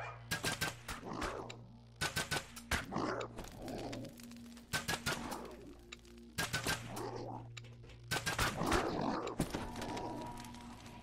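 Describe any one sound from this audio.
Sharp weapon blows strike in short bursts.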